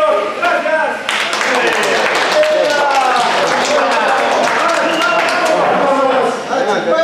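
Men clap their hands.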